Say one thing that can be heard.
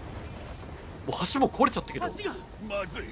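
A young man shouts urgently.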